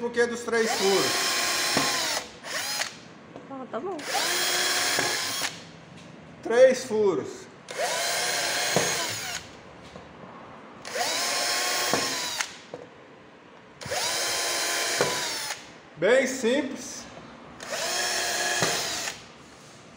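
A cordless drill whirs in short repeated bursts, driving screws into wood.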